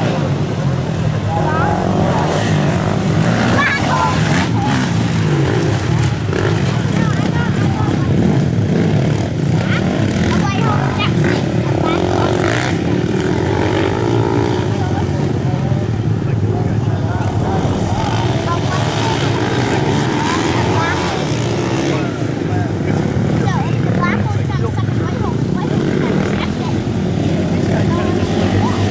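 Dirt bike engines whine and rev loudly as the bikes race past.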